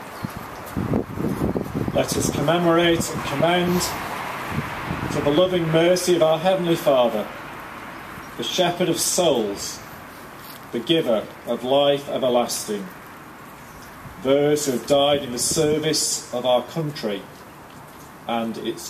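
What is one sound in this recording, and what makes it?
A man speaks calmly and clearly through a microphone outdoors.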